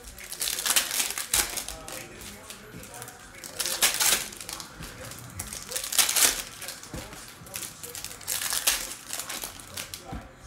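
Plastic wrapping crinkles and rustles between fingers.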